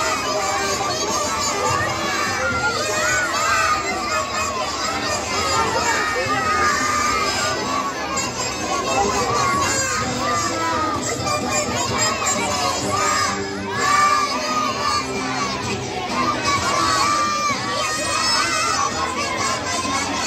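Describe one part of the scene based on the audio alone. Young children sing together loudly outdoors.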